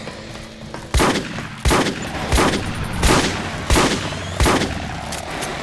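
A large creature screeches and lunges.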